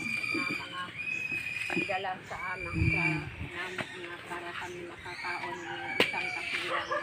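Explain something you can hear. A group of men and women chatter nearby outdoors.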